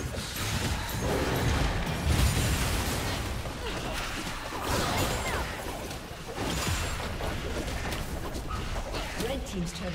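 Spells and attacks crackle and boom in a game battle.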